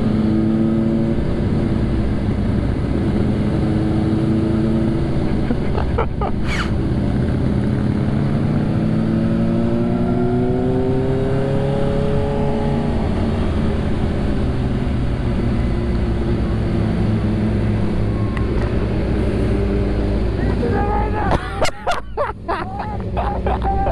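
A motorcycle engine hums steadily and shifts in pitch as the bike rides along.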